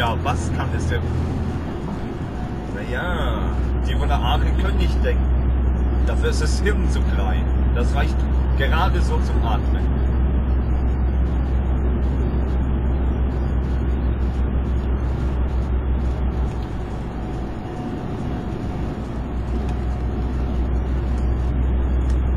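A vehicle's engine hums steadily as it drives along.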